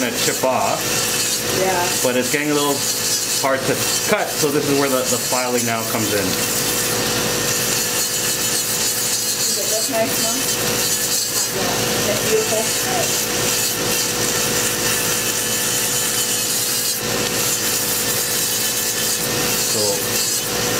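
An electric nail drill whirs steadily as it grinds a toenail.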